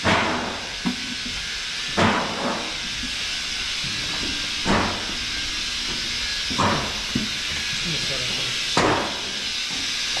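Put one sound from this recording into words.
Milking machines pulse with a regular sucking thump.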